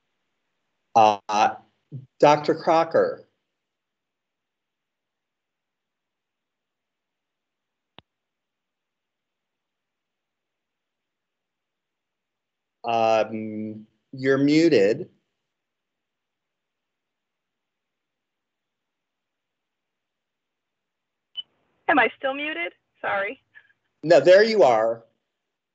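A middle-aged man speaks calmly over an online call, in short bursts with long pauses.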